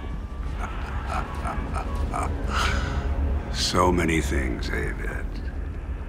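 An elderly man laughs loudly.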